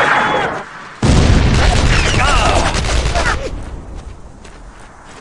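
A heavy explosion booms and rumbles, then fades.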